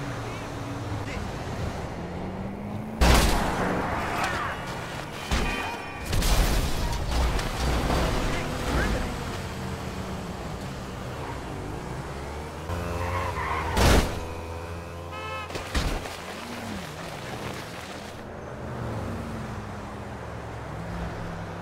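Car engines hum and whoosh past on a busy road.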